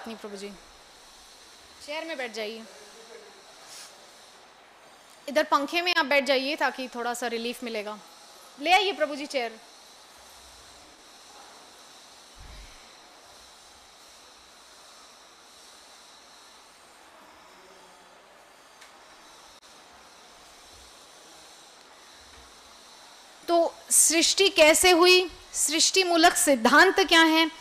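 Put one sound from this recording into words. A young woman speaks calmly into a microphone, with long pauses.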